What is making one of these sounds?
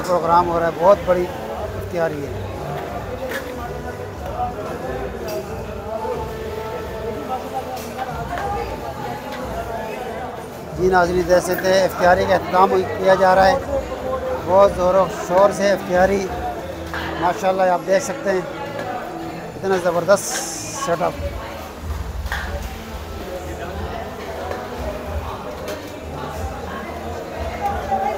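Metal plates and bowls clink as food is handled.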